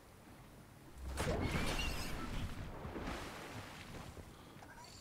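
Water splashes as a game character wades in.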